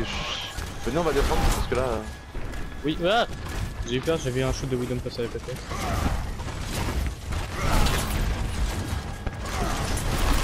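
Energy blasts fire rapidly from a weapon in a video game.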